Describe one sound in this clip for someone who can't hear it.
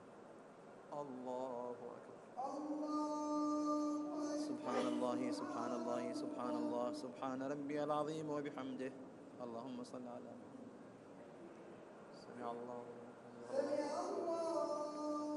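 An elderly man chants a prayer loudly through a microphone in a large echoing space.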